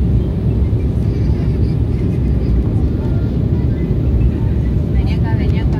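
A jet engine roars steadily with a low rumble inside an airliner cabin.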